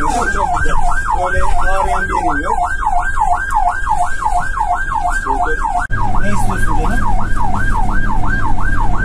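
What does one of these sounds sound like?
An ambulance siren wails rapidly up and down, heard from inside the vehicle.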